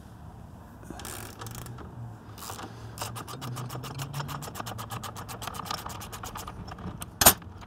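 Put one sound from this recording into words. A ratchet wrench clicks rapidly in short bursts.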